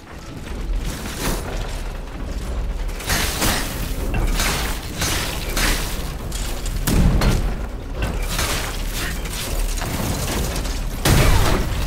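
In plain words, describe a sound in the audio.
Flames burst and crackle from fiery strikes.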